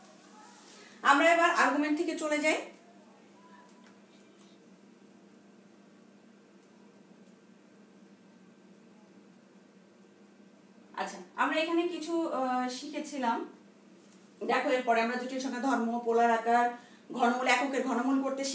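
A woman speaks close by in a teaching tone, in bursts with pauses.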